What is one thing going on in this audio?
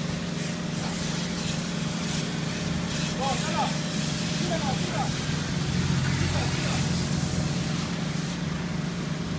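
A hose sprays water hard against a car.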